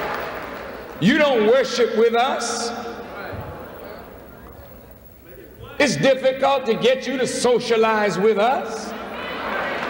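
A man speaks forcefully into a microphone in a large echoing hall.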